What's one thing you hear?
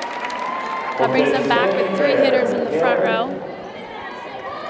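A crowd cheers and shouts in an echoing gym.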